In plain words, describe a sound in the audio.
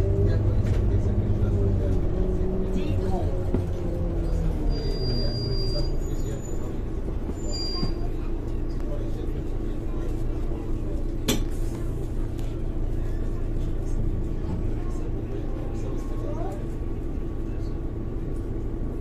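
A bus engine hums and rumbles steadily while the bus drives along.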